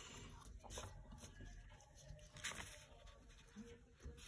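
A sheet of paper rustles under a hand.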